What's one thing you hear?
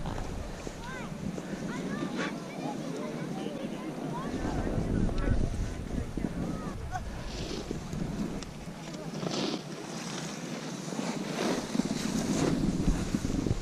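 A snowboard scrapes and hisses over packed snow.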